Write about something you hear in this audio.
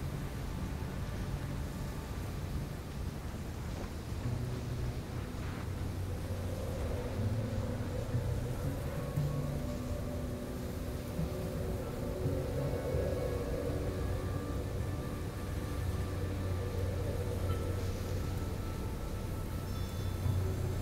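Feet slide and hiss across loose sand.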